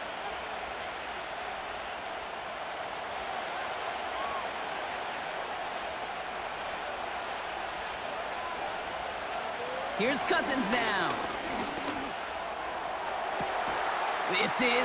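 A large stadium crowd roars steadily, swelling loudly toward the end.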